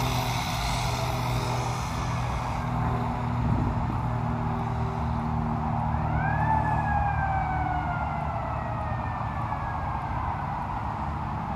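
A small toy car's electric motor whines as it drives along the road.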